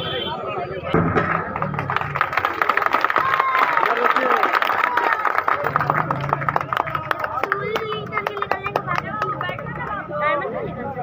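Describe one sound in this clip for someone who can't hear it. A group of people clap and cheer.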